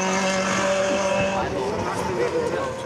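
A rally car engine roars past loudly at high revs.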